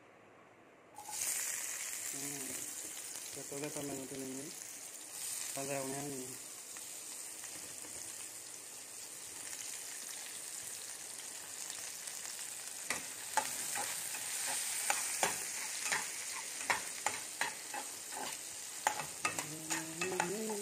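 Food sizzles steadily in a hot frying pan.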